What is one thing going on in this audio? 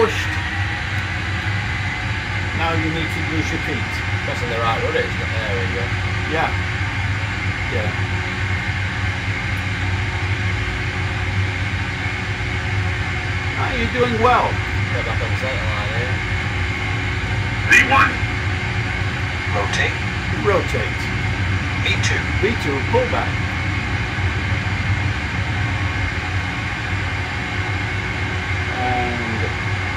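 Jet engines roar steadily in the background.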